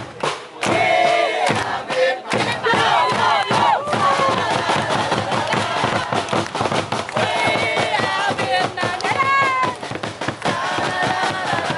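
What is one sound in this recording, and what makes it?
A drum beats in a steady rhythm.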